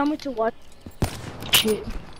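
A rifle shot cracks sharply once.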